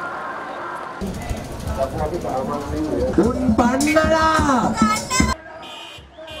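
A crowd of people chants and sings outdoors.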